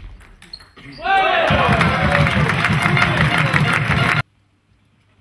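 A crowd cheers and claps loudly in a large echoing hall.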